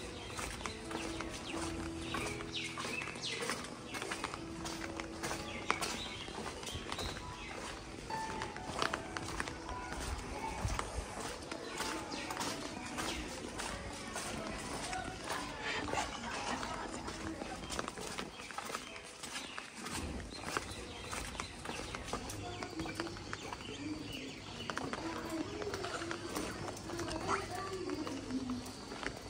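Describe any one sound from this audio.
Footsteps scuff on a wet concrete path.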